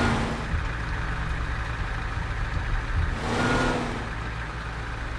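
A truck engine rumbles low and steady as it drives.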